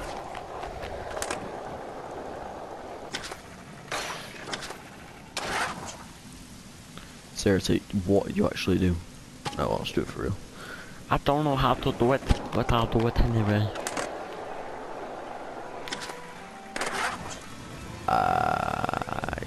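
Skateboard wheels roll along a smooth surface.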